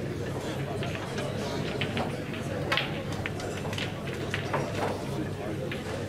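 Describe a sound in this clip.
Pool balls click against each other on a table.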